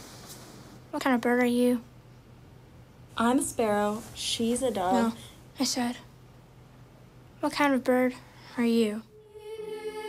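A young boy speaks calmly and close by.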